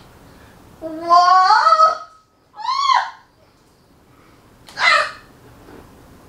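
A woman cries out in pain with high, rising yelps.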